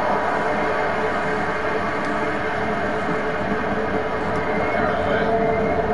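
A stadium crowd roars steadily throughout a football match.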